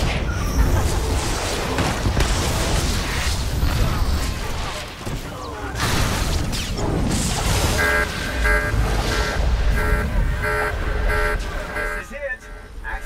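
Electric lightning crackles and buzzes in bursts.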